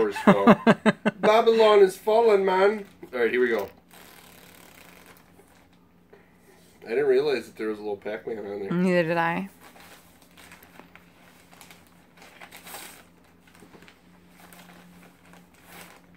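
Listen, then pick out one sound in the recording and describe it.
Plastic packaging rustles in a man's hands.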